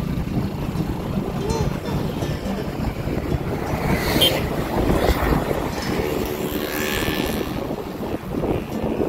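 Wind buffets loudly outdoors as a vehicle drives along a road.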